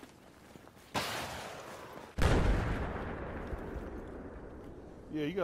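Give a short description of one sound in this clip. A loud explosion booms and rumbles away.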